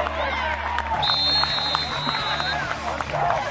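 A referee's whistle blows one long shrill blast.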